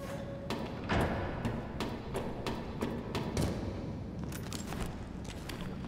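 Footsteps clank on metal rungs and a metal floor.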